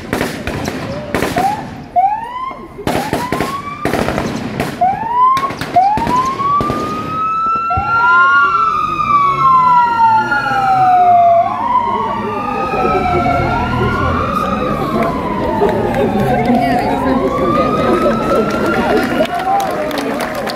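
A police siren wails up and down close by.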